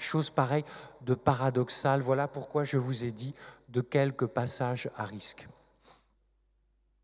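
A man speaks calmly and with expression into a microphone, in an echoing room.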